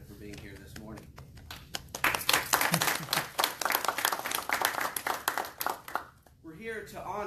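People applaud in a room.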